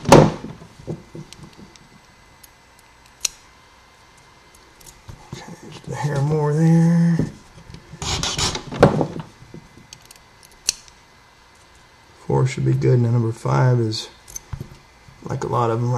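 Small metal parts click and tap softly against each other.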